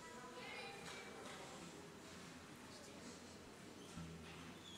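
A crowd of older men and women chatters quietly in a large echoing hall.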